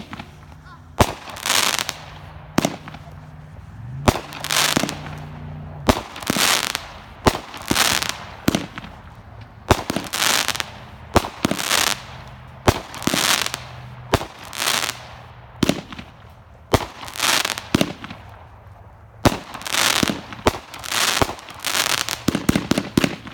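Firework shells burst overhead with sharp bangs and a hissing crackle.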